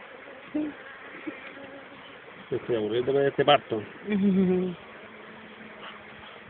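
Honeybees buzz in a steady, low hum.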